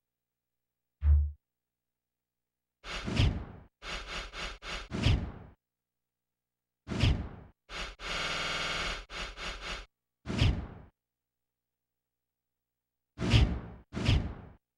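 Video game menu sounds blip as options are selected and scrolled through.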